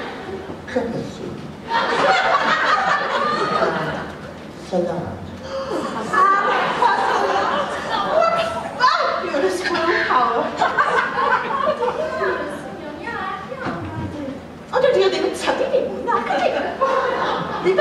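A woman speaks with animation into a microphone in a large echoing hall.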